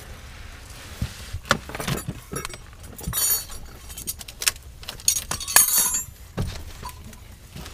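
Metal tools clink and scrape close by.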